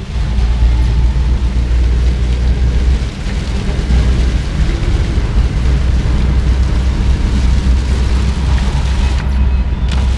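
Strong wind roars past a moving car.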